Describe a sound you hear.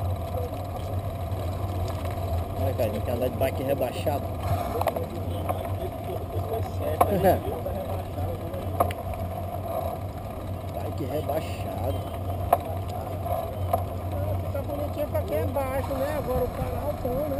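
Bicycles roll steadily along a paved path.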